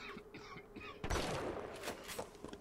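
A shotgun fires a loud blast that echoes.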